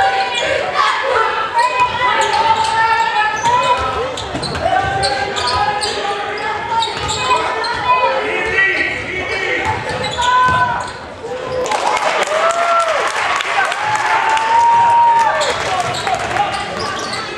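A crowd of spectators murmurs and calls out.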